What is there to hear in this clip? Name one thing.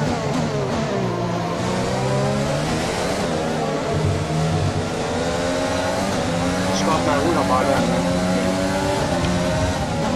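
A racing car engine screams as it accelerates, rising in pitch and dropping briefly with each gear change.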